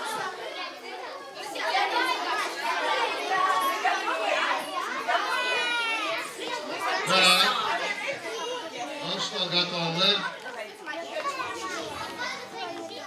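Children chatter and talk over one another in a room.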